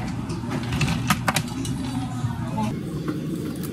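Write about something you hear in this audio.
Ice clinks in a plastic cup.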